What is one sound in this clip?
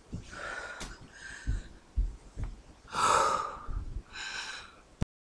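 A woman speaks close by, in a low voice.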